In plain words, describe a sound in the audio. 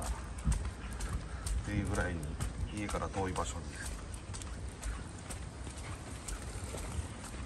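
A small dog's claws tap on concrete paving as it walks.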